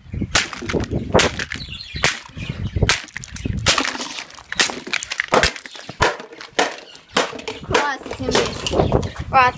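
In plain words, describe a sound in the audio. Plastic shards scatter and clatter on gravel.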